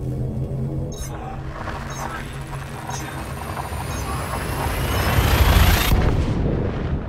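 A spaceship's jump drive charges with a rising whoosh and ends in a roaring burst.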